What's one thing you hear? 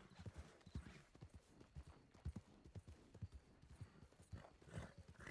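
Horse hooves thud in a quick, steady rhythm on soft ground.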